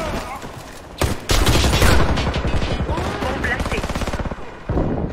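Gunfire bursts loudly in a game.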